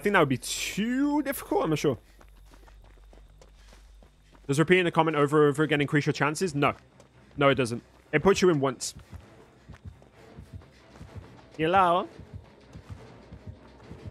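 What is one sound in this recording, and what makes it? Footsteps run over dry ground.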